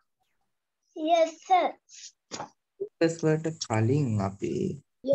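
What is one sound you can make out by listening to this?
A young girl speaks with animation over an online call.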